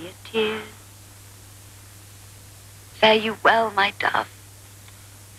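A young woman speaks softly and dreamily, close by.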